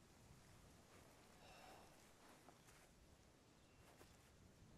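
Clothing and gear rustle softly.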